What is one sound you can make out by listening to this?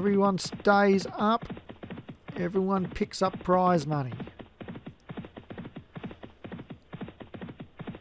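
Horses' hooves drum rapidly on turf as they gallop.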